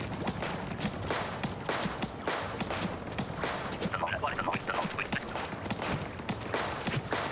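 Wet ink sprays and splatters in quick, repeated bursts.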